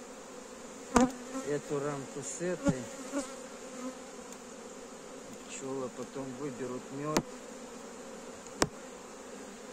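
Wooden hive frames knock and clack.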